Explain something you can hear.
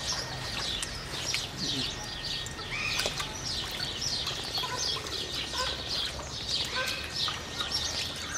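Otters splash as they swim through shallow water.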